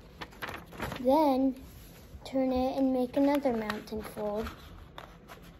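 A young boy speaks in a sing-song voice close by.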